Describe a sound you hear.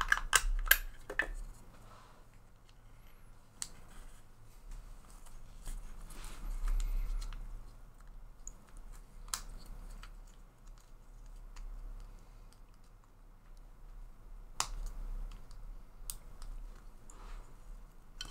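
Small plastic parts click and tap as hands fit them together.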